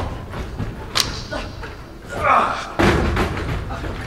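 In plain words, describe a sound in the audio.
A body thuds onto a wooden stage.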